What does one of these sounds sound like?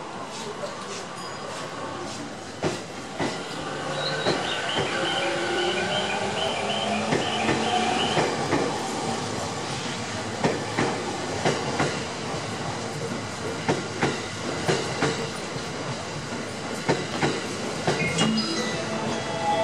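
An electric commuter train rushes past a platform.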